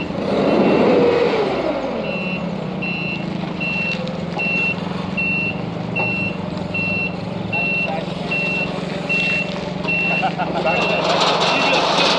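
A forklift's reversing alarm beeps in a steady rhythm.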